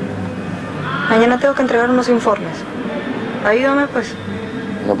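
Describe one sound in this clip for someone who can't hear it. A woman speaks quietly and calmly, close by.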